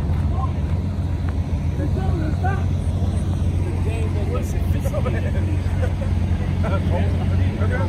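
A crowd of men and women chatters at a distance outdoors.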